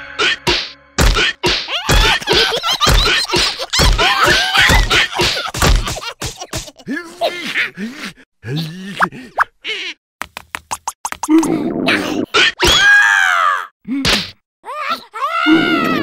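Quick thumps and slaps sound as cartoon creatures scuffle.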